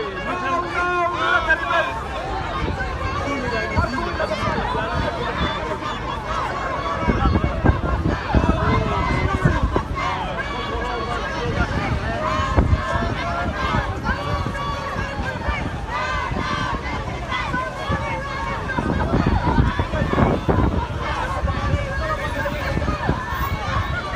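Wind buffets a flag close by.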